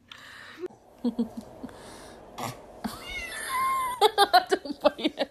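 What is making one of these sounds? A baby laughs loudly and shrieks with delight.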